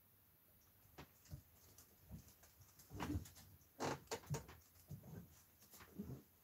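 Paintbrushes clatter and tap on a table.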